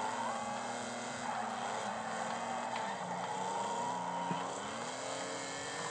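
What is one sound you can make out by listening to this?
Tyres squeal on asphalt through the corners.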